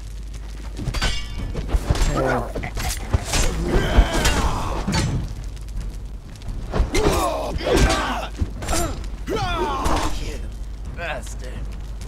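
Blades clash and strike flesh in a fight.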